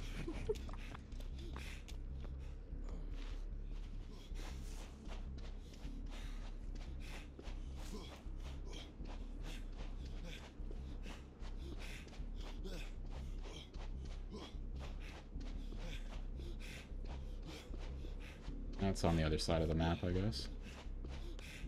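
Footsteps run quickly over dirt and sand.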